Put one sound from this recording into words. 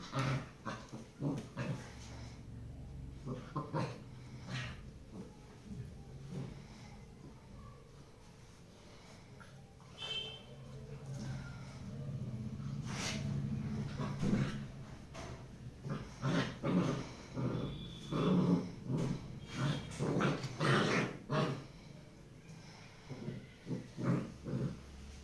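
Dogs scuffle and paw at each other on a hard floor.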